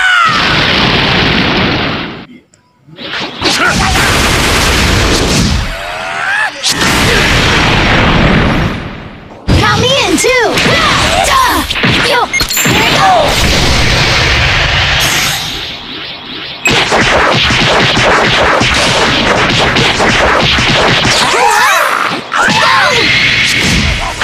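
Loud energy blasts roar and crackle in a fast fight.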